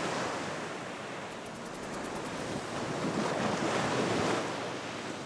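Waves wash and break on a sandy shore.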